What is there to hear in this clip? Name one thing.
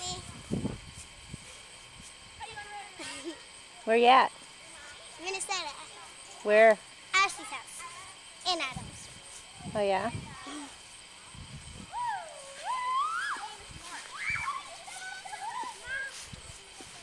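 A young girl talks and laughs close by.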